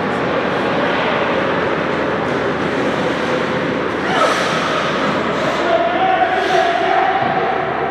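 Children's voices chatter and echo in a large hall.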